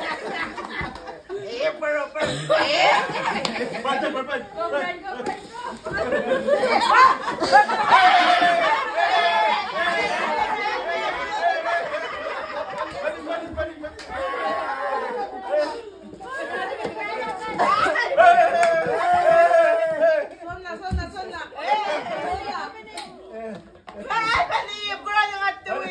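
A group of women talk and laugh excitedly close by.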